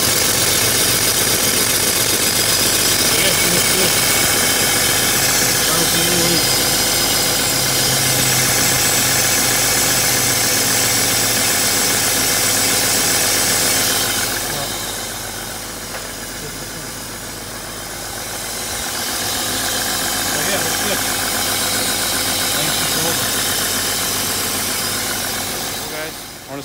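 A car engine idles with a loud, steady whirring hum close by.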